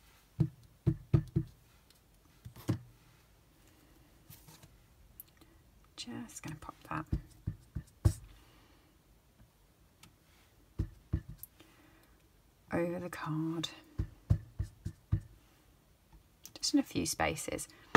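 A rubber stamp taps repeatedly on an ink pad.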